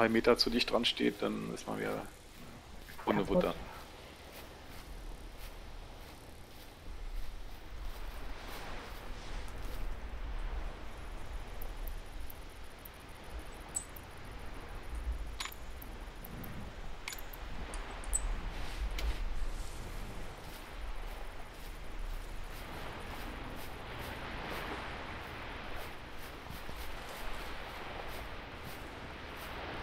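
Wind blows steadily outdoors across open grass.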